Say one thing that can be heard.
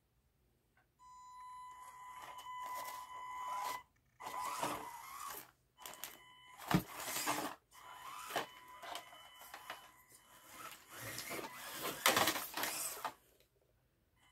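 A small electric motor whines in short bursts.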